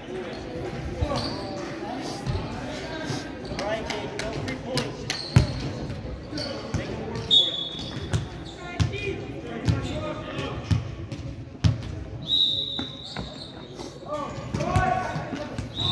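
A volleyball is hit with sharp slaps that echo through a large hall.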